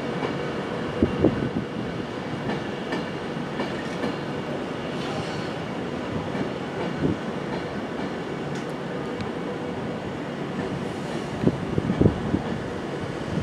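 Train wheels clatter and knock over rail joints.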